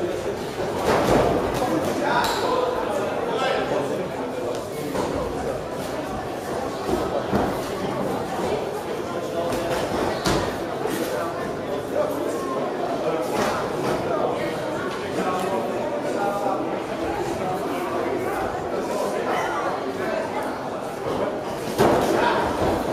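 Boxing gloves thud against a body and head.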